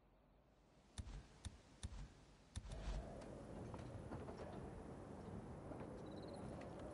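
Footsteps clank on a metal grate.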